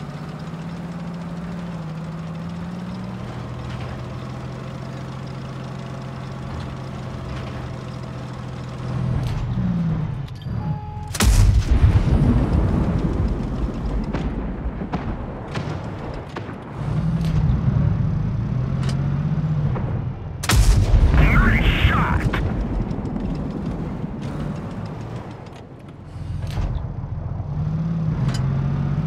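A tank engine rumbles steadily, rising and falling as it moves.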